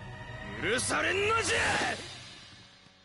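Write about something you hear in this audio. A middle-aged man shouts angrily.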